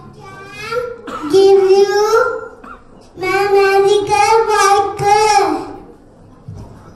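A young boy sings loudly into a microphone.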